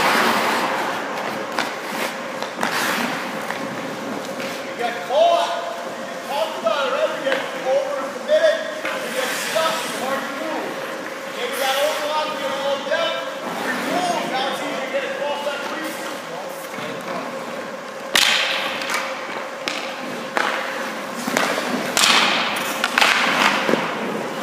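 Skates scrape sharply across the ice.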